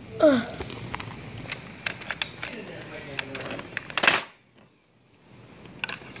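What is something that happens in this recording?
Small plastic toys click and knock together as they are handled.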